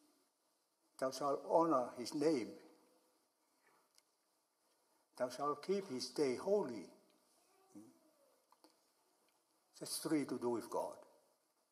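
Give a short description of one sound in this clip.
An elderly man speaks calmly and slowly through a microphone, in short phrases with pauses, in an echoing room.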